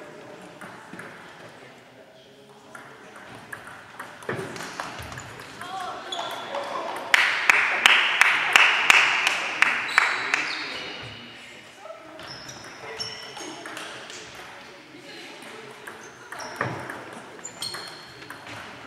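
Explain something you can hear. Table tennis balls click sharply on tables and bats in a large echoing hall.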